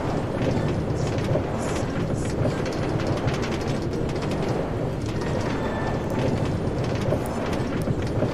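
A minecart rattles steadily along rails.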